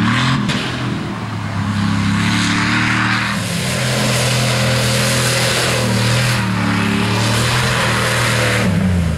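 Mud splatters and sprays from spinning tyres.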